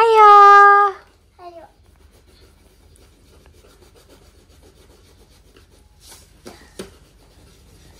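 Pencils scratch softly on paper.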